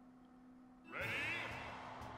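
Upbeat game music starts up near the end.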